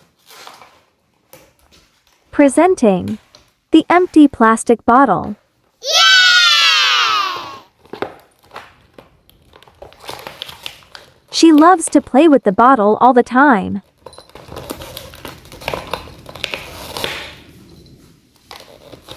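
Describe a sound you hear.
A plastic bottle crinkles and crackles as a small dog paws and bites at it.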